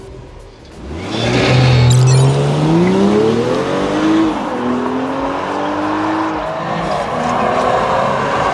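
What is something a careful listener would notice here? A car accelerates away with its engine rising in pitch.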